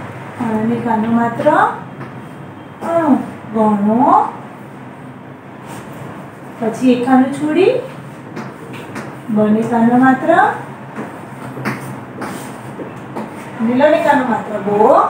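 A woman speaks clearly and slowly, close by, as if teaching.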